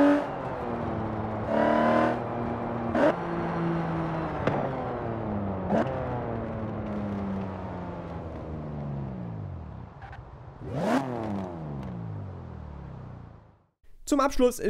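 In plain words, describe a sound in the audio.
A car engine roars and shifts through gears, then winds down as the car slows.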